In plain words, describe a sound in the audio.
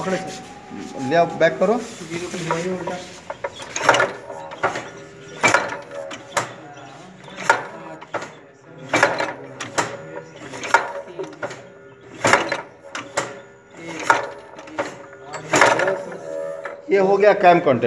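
Metal gears of a machine clank and knock as they turn.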